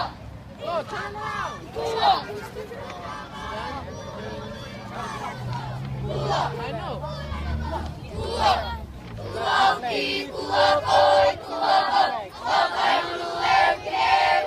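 A crowd of protesters chants and shouts loudly outdoors.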